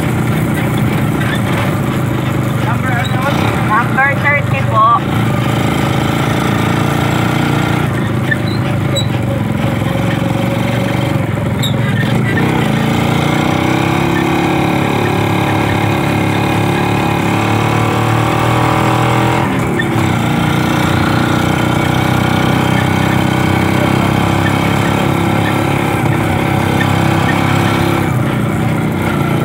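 A small single-cylinder four-stroke motorcycle engine runs while riding along a street.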